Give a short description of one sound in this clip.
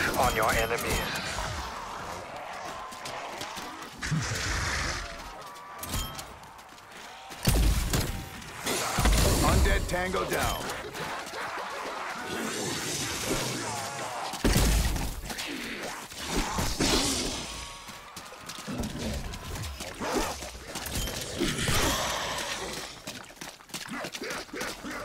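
A ray gun fires in bursts of buzzing blasts.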